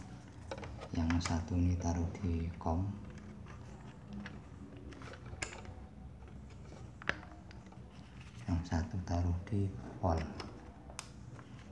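Test lead plugs click and scrape as they are pushed into a meter's sockets.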